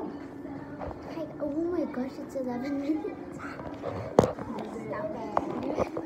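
Another young girl laughs and chatters nearby.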